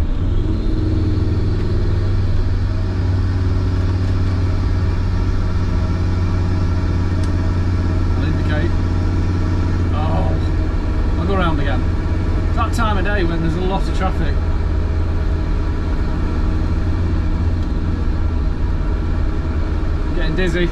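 An engine drones loudly and steadily from inside a vehicle cab.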